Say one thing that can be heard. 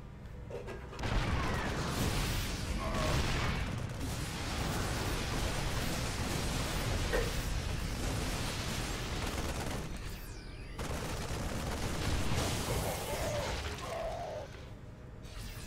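Video game battle noise rumbles and crackles with blasts.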